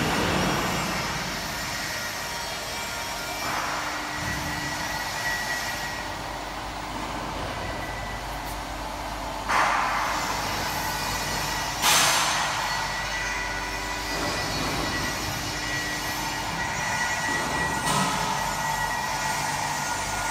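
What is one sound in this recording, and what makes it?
An electric machine hums steadily in a large echoing hall.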